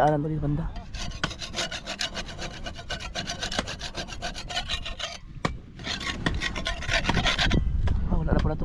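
A metal blade scrapes rapidly against a wooden boat hull.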